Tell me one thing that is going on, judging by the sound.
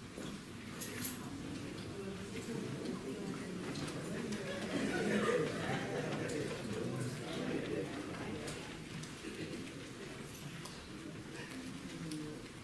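Many men and women chatter at once in a large echoing hall.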